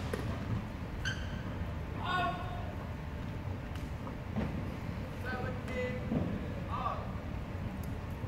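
Sports shoes squeak sharply on a hard court floor.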